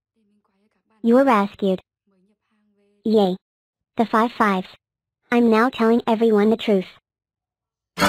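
A young woman speaks calmly close to a microphone.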